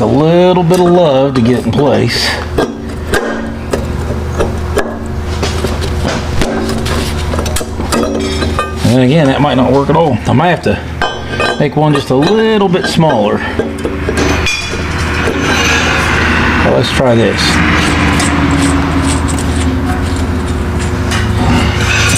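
Metal parts clink and scrape against an engine block.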